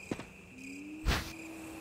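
A short menu chime sounds.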